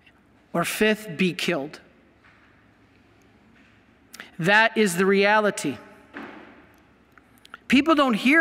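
A middle-aged man speaks with emphasis into a microphone, in a large echoing hall.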